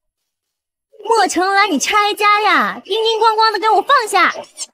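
A young woman shouts loudly and angrily nearby.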